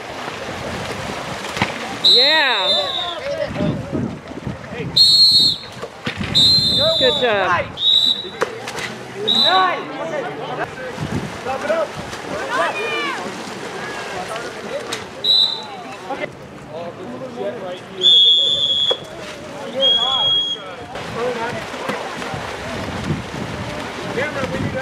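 Water splashes as swimmers thrash in a pool.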